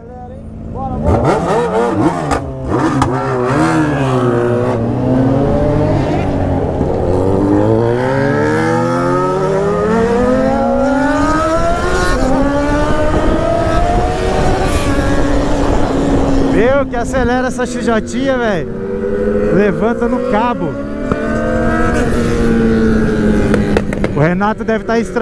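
A motorcycle engine revs loudly up and down close by, rising and falling through the gears.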